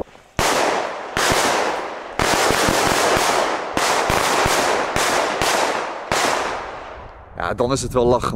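Firecrackers burst with loud hissing bangs and crackle, close by outdoors.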